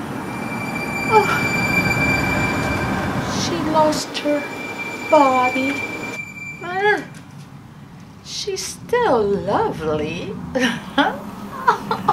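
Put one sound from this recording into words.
An elderly woman speaks in an eerie, theatrical voice close by.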